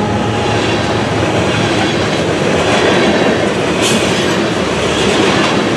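A freight train rumbles past close by, loud and steady.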